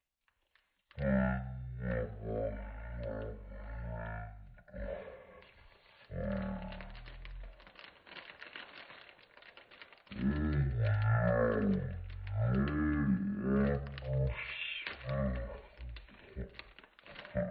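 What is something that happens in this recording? Plastic film crinkles and rustles under a hand.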